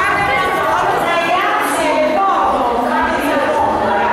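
Children chatter and laugh close by.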